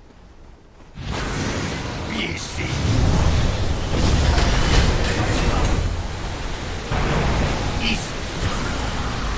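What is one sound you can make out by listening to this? Magic spells whoosh and burst during a fight.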